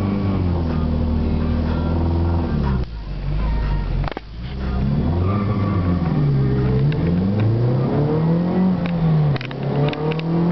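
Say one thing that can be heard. A turbocharged four-cylinder engine revs up and down inside the cabin while the car waits at the line.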